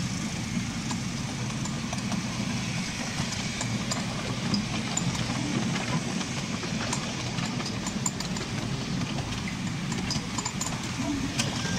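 Train wheels click and clatter over rail joints and points.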